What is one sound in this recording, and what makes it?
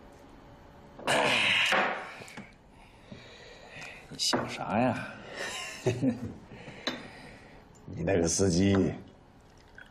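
An elderly man laughs softly nearby.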